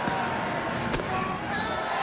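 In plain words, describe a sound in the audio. A pitched ball pops into a catcher's mitt.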